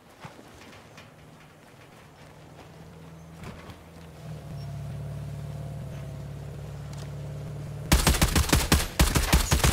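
A vehicle engine hums nearby.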